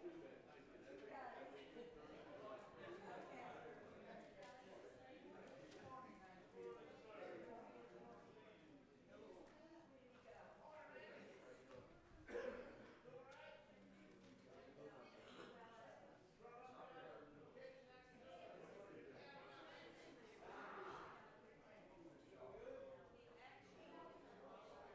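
Many men and women chat at once in a large echoing hall.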